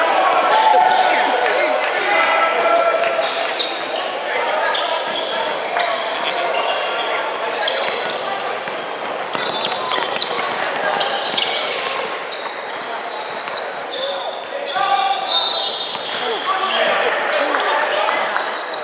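Young players and spectators call out in a large echoing gym.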